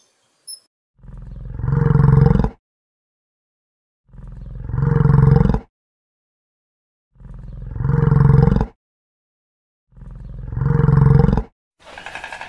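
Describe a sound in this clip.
A large animal grunts in long, deep bursts.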